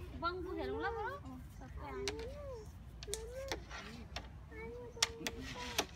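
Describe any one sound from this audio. A young child talks in a high voice close by.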